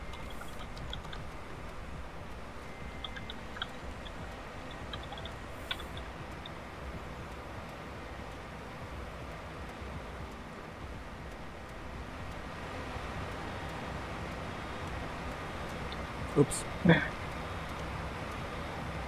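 A tractor engine hums steadily in the background.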